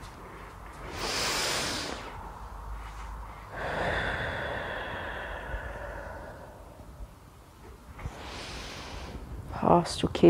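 Several people breathe out loudly together.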